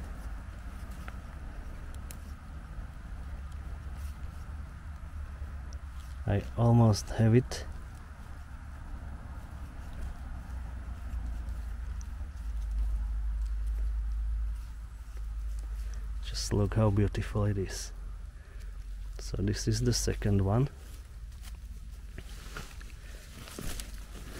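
Wind rumbles softly outdoors.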